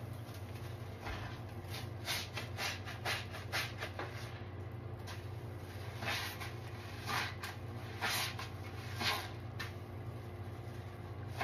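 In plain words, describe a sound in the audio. Hands squeeze and swish wet, soapy sponges in water.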